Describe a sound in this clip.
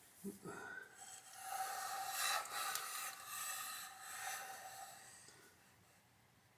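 A heavy metal vise scrapes and knocks as it is turned over on a hard surface.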